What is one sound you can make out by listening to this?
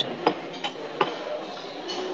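A fork clinks against a plate.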